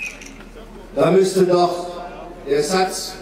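An elderly man speaks loudly through a microphone and loudspeakers outdoors.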